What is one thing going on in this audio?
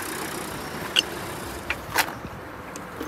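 A metal jack handle knocks and clinks.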